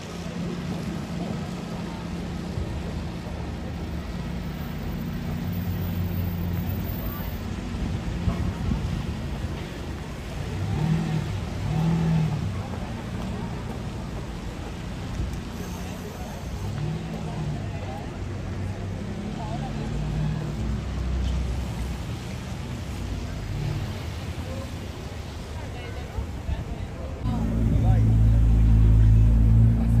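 A crowd of people chatters outdoors in the background.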